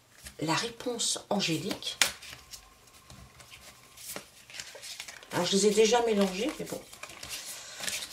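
Cards shuffle with a soft papery rustle.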